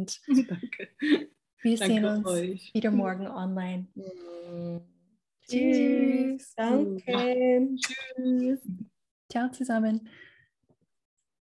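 Women talk cheerfully over an online call.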